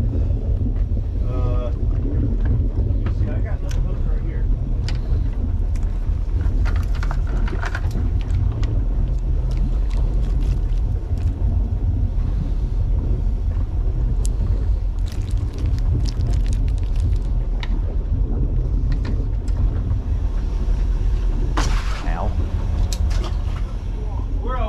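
Wind blows steadily across open water outdoors.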